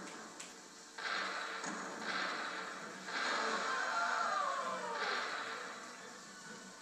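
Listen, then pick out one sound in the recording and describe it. Gunshots boom from a video game through a television speaker.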